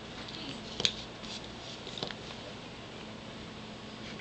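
Paper rustles as a sheet is slid into place.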